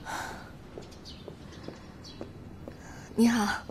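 Heels click on a wooden floor as a woman walks.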